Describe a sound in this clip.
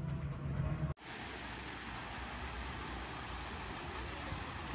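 Fountain jets splash and spray steadily into a pool.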